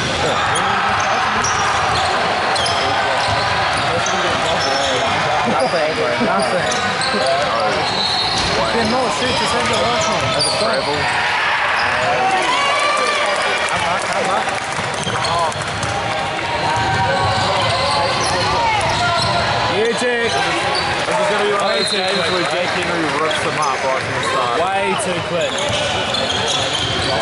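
Basketball shoes squeak on a hardwood court in a large echoing gym.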